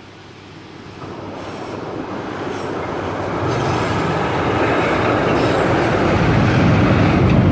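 A train rumbles closer over a bridge and grows louder.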